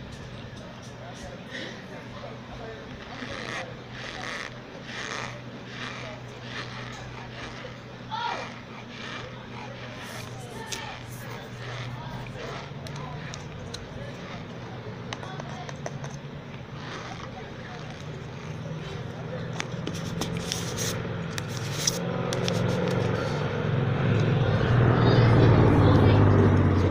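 A woman chews powdery starch up close with soft crunching.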